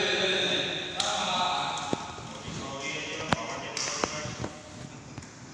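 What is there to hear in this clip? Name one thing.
Rackets strike shuttlecocks with sharp pops in a large echoing hall.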